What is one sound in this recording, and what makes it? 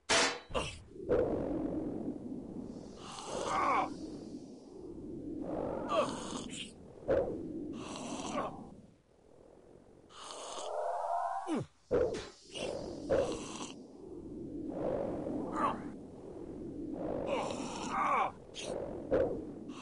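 Weapon hits and creature impacts thud and clang over and over.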